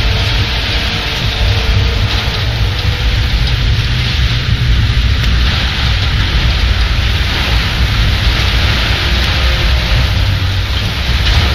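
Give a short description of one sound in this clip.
Strong wind roars over the open sea.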